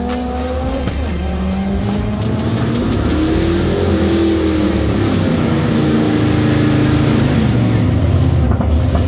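Race car engines roar in the distance, rising and falling in pitch.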